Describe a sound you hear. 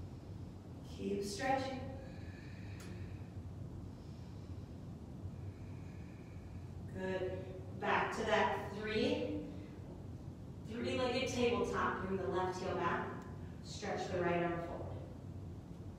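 A woman speaks calmly, giving instructions into a microphone.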